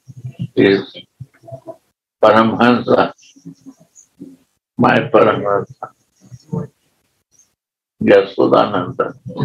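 An older man speaks with animation, close to a microphone, in short bursts with pauses.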